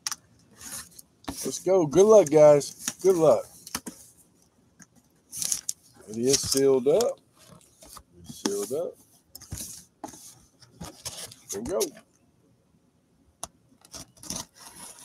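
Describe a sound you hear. A cardboard box scrapes and rustles as it is handled and turned.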